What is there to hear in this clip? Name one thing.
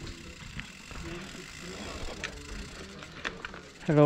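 Bicycle tyres rumble over wooden planks.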